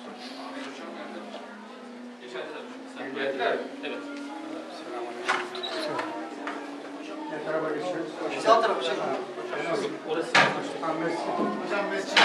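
Several elderly men greet each other in low, overlapping voices.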